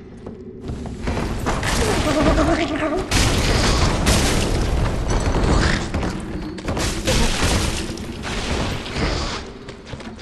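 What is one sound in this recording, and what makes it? A large creature snarls and roars close by.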